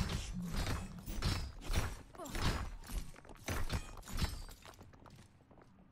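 Wooden crates smash and splinter apart.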